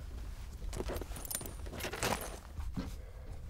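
A leather pouch rustles and flaps as it is opened.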